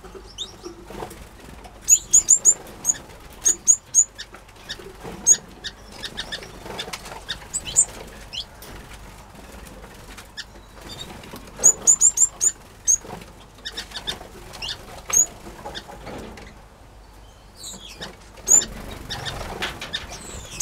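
Many small finches chirp and twitter in high, quick bursts.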